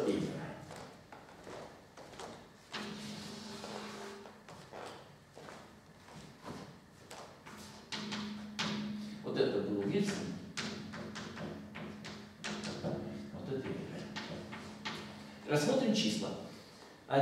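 An elderly man lectures calmly in an echoing room.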